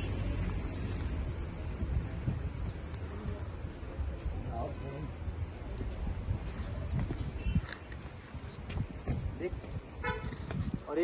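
Footsteps scuff and tap on stone steps outdoors.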